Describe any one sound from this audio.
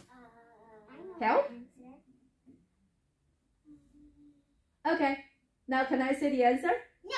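A young girl speaks nearby.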